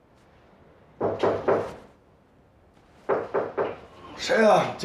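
A man calls out drowsily from close by.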